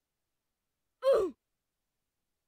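A short electronic game sound plays once.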